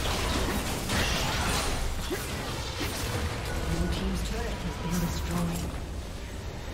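Spell effects crackle and whoosh in a fast fight.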